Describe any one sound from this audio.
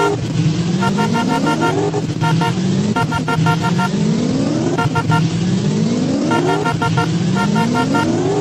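A car engine revs up again and again, rising in pitch each time.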